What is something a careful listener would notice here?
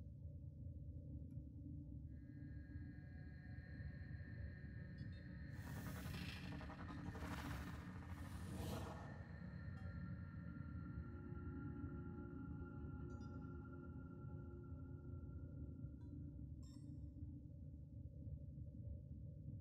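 A spacecraft engine hums low and steadily.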